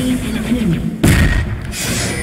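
A fiery blast bursts with a loud boom.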